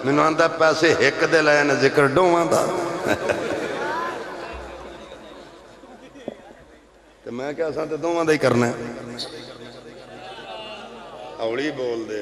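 A man speaks with animation through a microphone and loudspeakers, his voice echoing.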